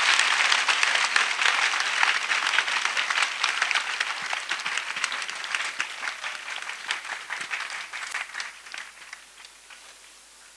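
A crowd claps and cheers outdoors, then fades away.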